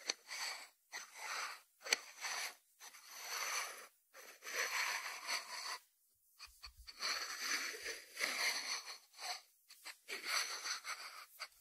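A ceramic dish slides on a wooden board.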